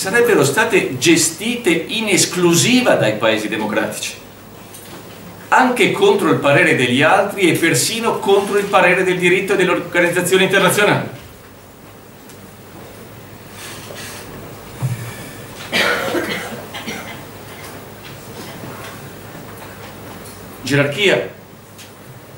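A middle-aged man speaks calmly into a microphone in a room with a slight echo.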